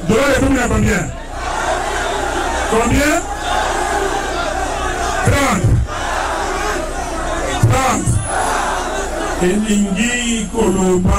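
A large crowd outdoors cheers and chants.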